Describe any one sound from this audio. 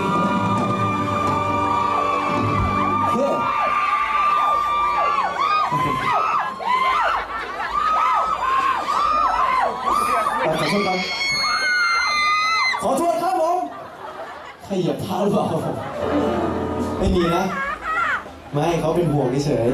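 A young man sings into a microphone, heard through loudspeakers outdoors.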